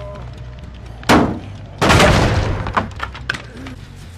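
Wooden boards crack and splinter loudly.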